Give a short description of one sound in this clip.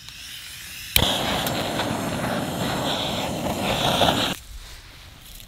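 A gas torch roars with a steady hiss.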